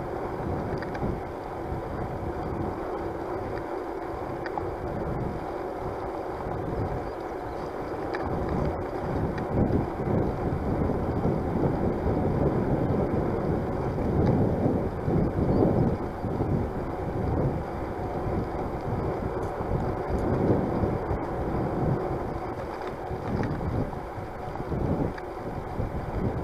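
A bicycle's tyres hum on a paved path.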